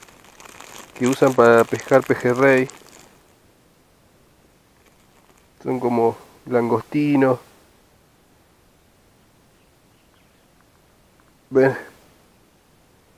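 A man speaks calmly, close up.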